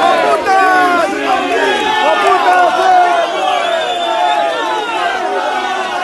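A crowd of men and women shouts and jeers loudly nearby, outdoors.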